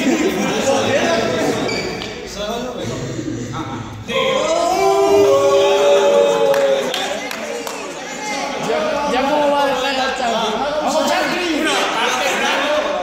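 Several young men talk and call out in a large echoing hall.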